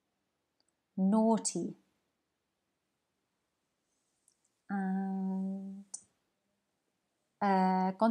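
A woman speaks close to a microphone in short, calm phrases with pauses between them.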